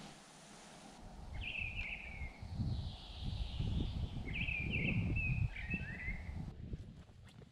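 Footsteps crunch through brush and dry undergrowth.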